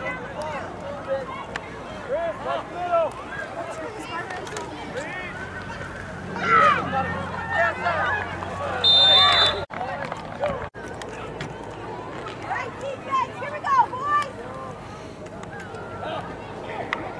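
A crowd of spectators cheers and shouts outdoors, swelling loudly for a moment.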